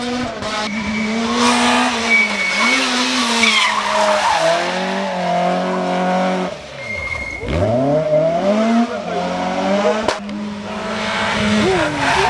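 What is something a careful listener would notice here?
A second rally car engine screams through the gears and fades away.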